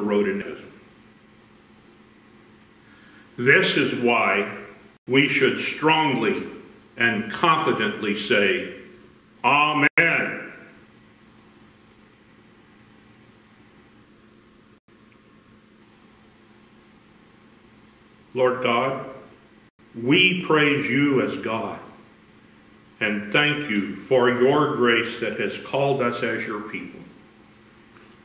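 An elderly man speaks calmly through a microphone in an echoing room, with long pauses.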